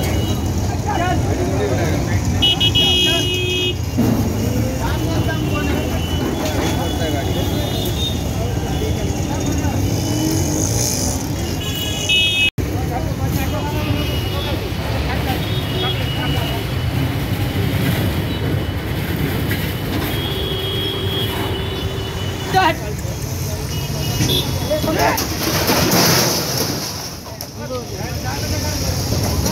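A metal cabinet bangs and scrapes against a truck bed.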